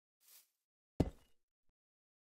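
A stone block thuds into place once.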